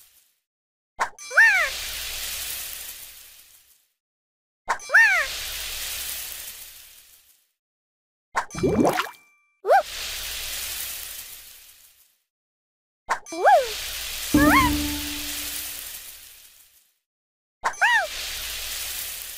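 Game fruit pieces pop and chime as they match, with sparkling effects that fade away.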